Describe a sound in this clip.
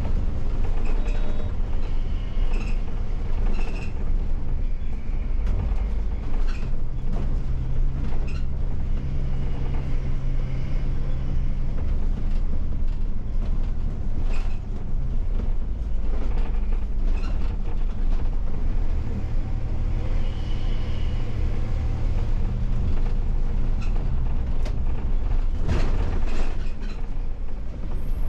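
A bus engine hums and drones steadily, rising and falling as it drives.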